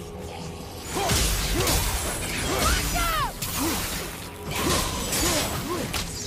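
Flames whoosh and burst from a weapon.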